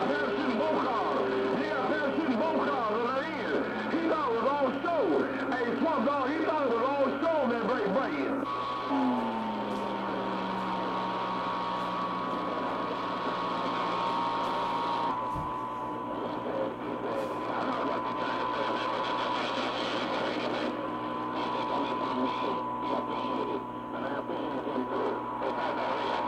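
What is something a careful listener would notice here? A shortwave radio hisses with static and warbling, whistling interference.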